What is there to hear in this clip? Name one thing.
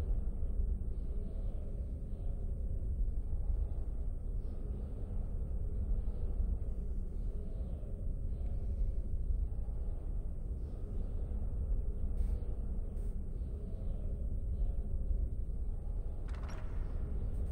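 A young man talks calmly and close into a microphone.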